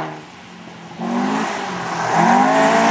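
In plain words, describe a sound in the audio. A second rally car engine revs up as it approaches.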